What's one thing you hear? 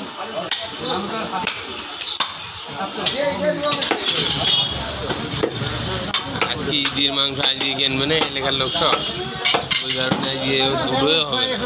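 A cleaver chops hard into meat and bone.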